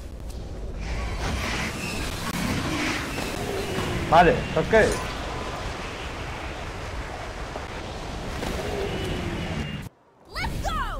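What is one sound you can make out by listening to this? Game combat effects whoosh and clash in a noisy battle.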